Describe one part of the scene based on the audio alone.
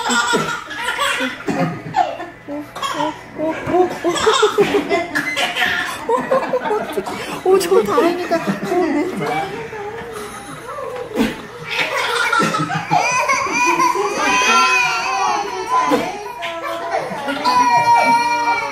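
A woman talks playfully to babies.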